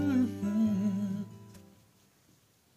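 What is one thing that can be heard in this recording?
A middle-aged man sings a sustained note close to a microphone.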